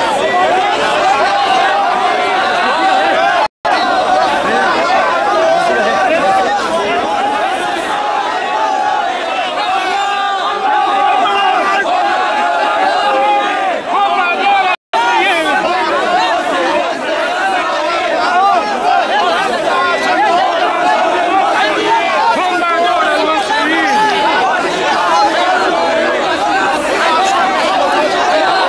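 A dense crowd of men shouts and cheers loudly all around, close by.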